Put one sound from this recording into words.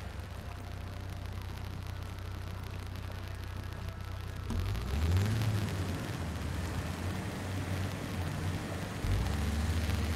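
Water splashes around tyres driving through a river.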